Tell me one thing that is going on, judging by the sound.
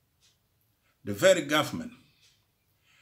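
An elderly man speaks calmly into a microphone, heard as if over an online call.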